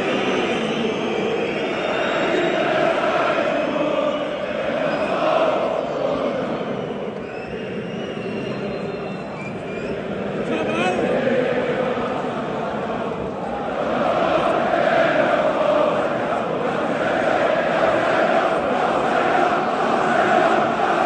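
A huge stadium crowd chants and sings loudly, echoing across open air.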